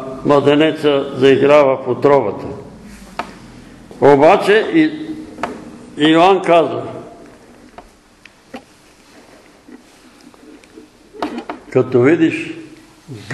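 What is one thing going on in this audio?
An elderly man speaks slowly and deliberately in a room with some echo, pausing between phrases.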